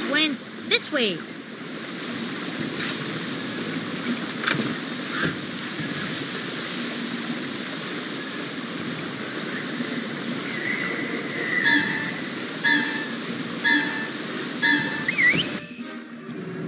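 A waterfall splashes steadily.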